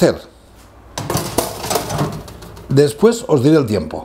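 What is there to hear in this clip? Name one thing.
A metal baking tray scrapes as it slides onto an oven rack.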